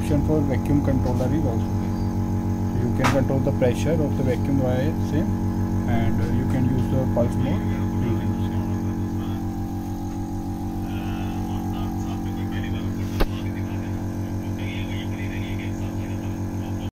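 An electrical machine hums steadily.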